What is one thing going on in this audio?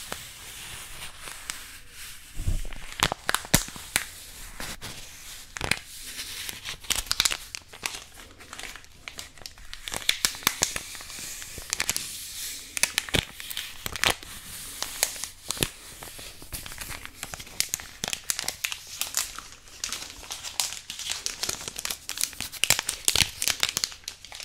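Paper crinkles and rustles close to a microphone.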